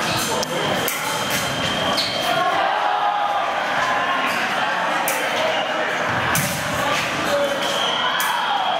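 Feet stamp and squeak on the floor.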